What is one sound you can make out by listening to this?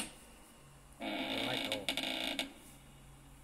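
A heavy door creaks slowly open through a small phone speaker.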